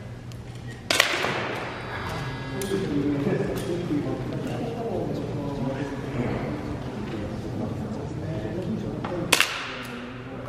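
A gun fires with a sharp crack in an echoing hall.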